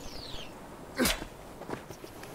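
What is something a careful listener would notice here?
Glass shatters sharply.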